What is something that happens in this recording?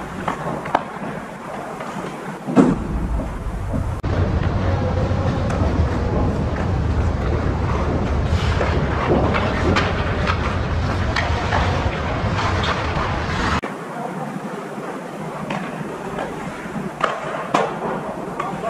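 Ice hockey sticks click against a puck on ice.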